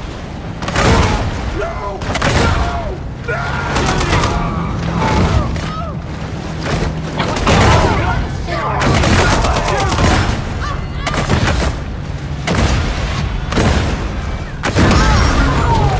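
Explosions boom and crackle in bursts.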